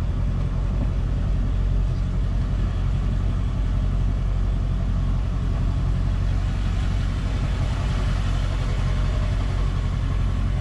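A car engine hums steadily from inside a slowly moving vehicle.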